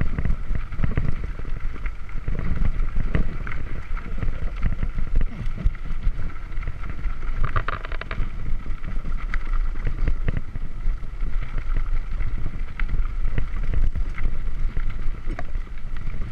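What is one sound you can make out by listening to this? A bicycle frame and chain rattle over bumps.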